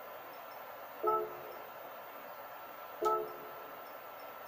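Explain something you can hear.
A short electronic menu chime sounds from a television speaker.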